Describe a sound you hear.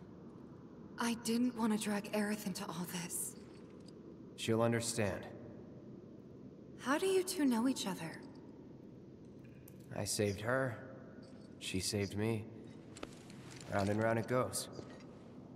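A young man talks calmly close to a microphone.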